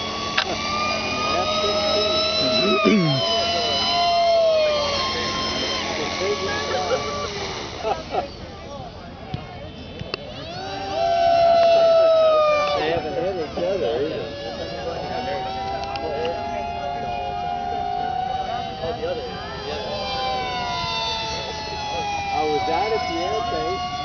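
A small model aircraft's electric motor whines, its pitch rising and falling.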